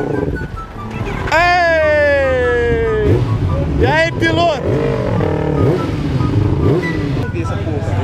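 A motorcycle speeds away, its engine rising and falling in pitch.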